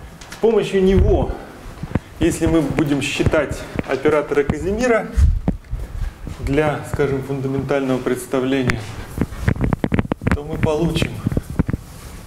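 A man speaks clearly, explaining at a steady pace.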